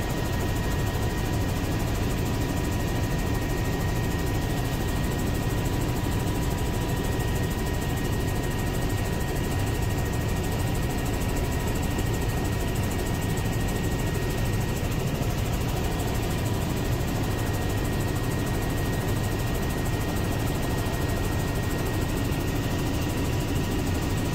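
A helicopter engine and rotor roar steadily and loudly from inside the cabin.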